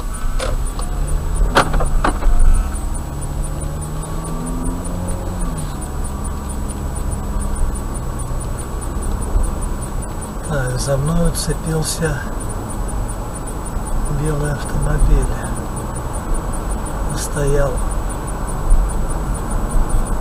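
Tyres rumble steadily on a road.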